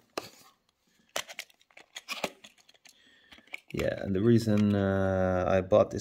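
A plastic tray clicks and taps as it is handled.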